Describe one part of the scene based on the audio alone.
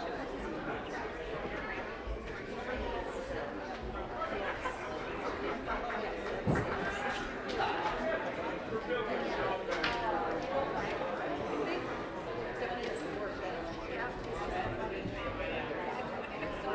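Many adult men and women chat softly at once in a large, echoing room.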